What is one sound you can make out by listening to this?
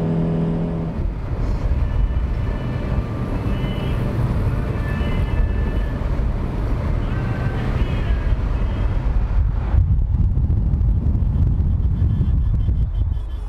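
Wind rushes loudly past an open car window.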